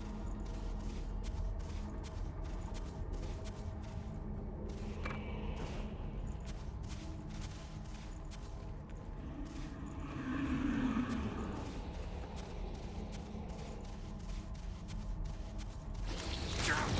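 Quick footsteps run over rocky ground.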